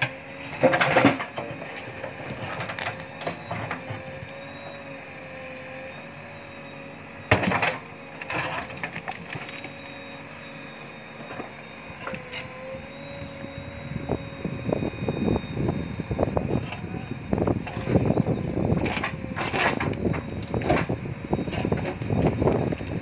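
A backhoe engine hums steadily nearby.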